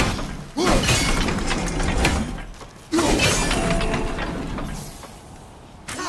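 A heavy metal mechanism grinds and clanks as it turns.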